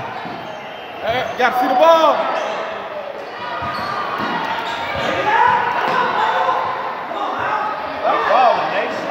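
Sneakers squeak on a gym floor in a large echoing hall.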